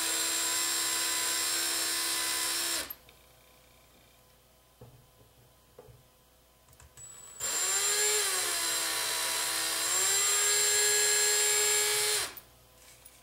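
A cordless drill whirs at high speed, then stops.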